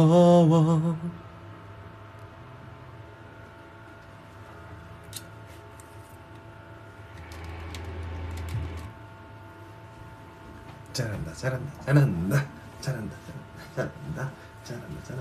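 A small electric fan whirs steadily nearby.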